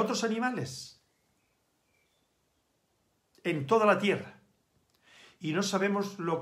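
An elderly man speaks calmly and close to a microphone, with short pauses.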